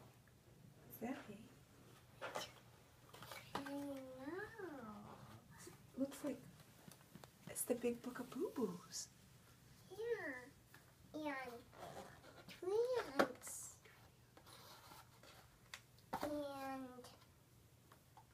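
A young girl speaks in a high, lively voice close by.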